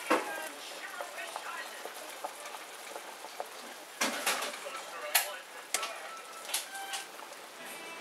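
A ladle clinks against the side of a pot.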